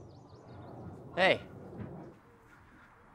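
A teenage boy calls out loudly nearby.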